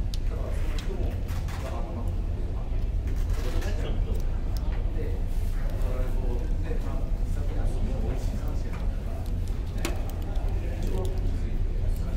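A plastic packet crinkles as hands tear it open.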